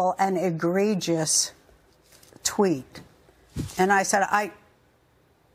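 A middle-aged woman speaks with feeling into a close microphone.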